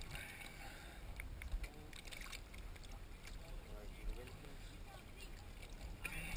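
Water sloshes and splashes close by.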